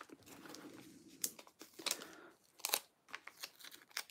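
A sticker peels off with a soft tearing sound.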